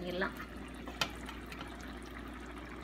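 A boiled egg is set down into a pot of thick sauce with a soft plop.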